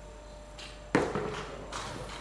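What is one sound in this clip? Pool balls clack together on the table.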